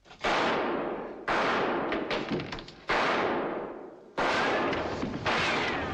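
Bodies thud and scuffle in a struggle.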